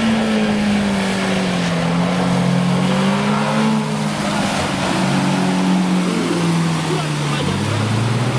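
Tyres churn and splash through mud.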